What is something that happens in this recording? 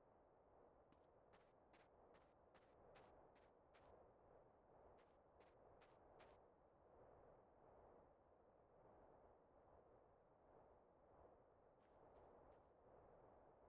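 Footsteps crunch quickly through dry grass.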